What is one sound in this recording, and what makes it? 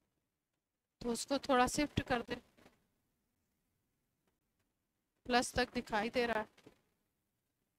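A woman speaks through a headset microphone in short bursts, explaining calmly.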